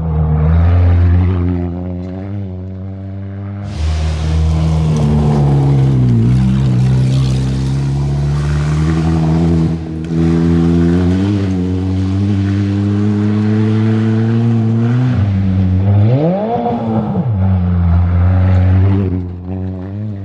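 Gravel sprays from car tyres.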